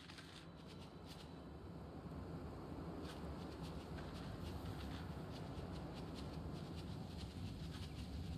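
Wind rustles through tall grass outdoors.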